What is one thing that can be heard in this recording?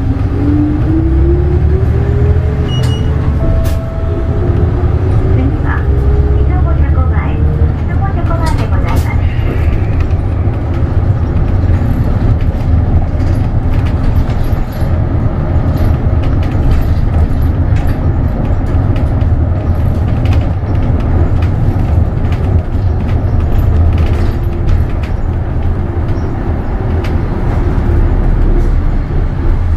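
A bus rattles and creaks over the road.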